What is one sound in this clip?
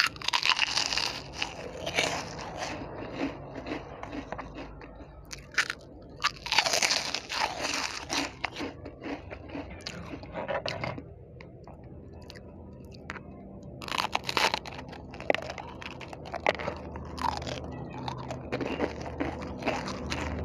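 A woman chews and smacks her lips wetly, close to a microphone.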